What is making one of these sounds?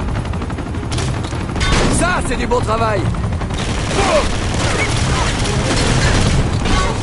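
A helicopter's rotor thumps.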